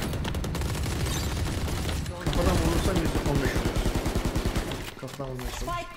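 A rifle fires a burst of gunshots.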